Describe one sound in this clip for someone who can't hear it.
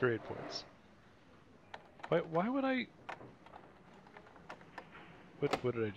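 A door lock clicks as it is picked.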